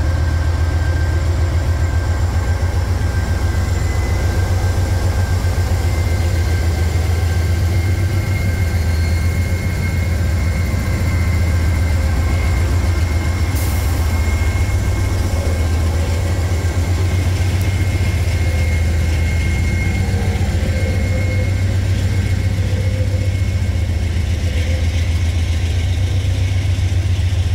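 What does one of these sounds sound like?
Train wheels clatter and squeal on the rails as a freight train rolls past.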